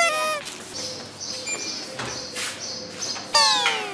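A door handle clicks and a door swings open.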